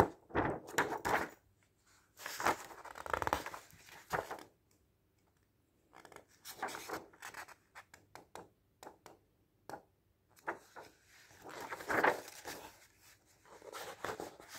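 Paper pages rustle and flutter as a book is flipped through.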